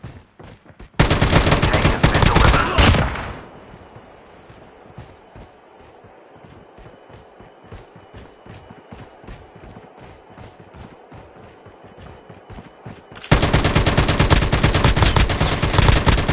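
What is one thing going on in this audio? A rifle fires in rapid, loud bursts.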